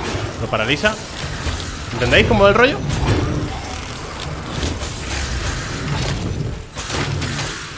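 Swords clash and magic whooshes in a game battle.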